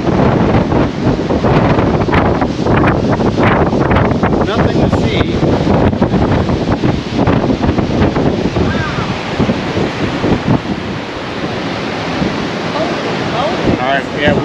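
Strong wind blows hard across the microphone outdoors.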